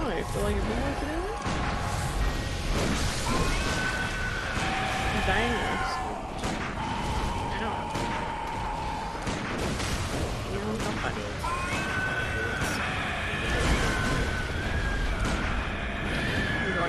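A huge beast growls and roars.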